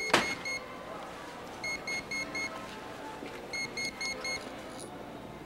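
Short electronic beeps sound in quick runs from a handheld phone.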